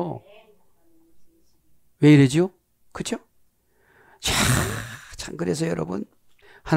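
A middle-aged man speaks with animation into a headset microphone, in short bursts.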